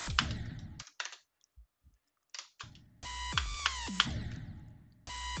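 Electronic video game music plays in short, choppy bursts.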